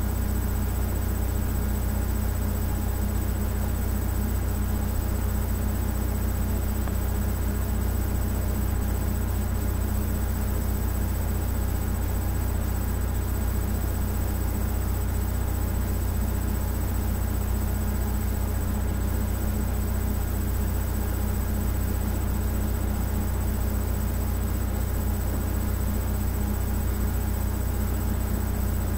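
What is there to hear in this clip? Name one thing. Music with a deep, steady bass plays through a small speaker.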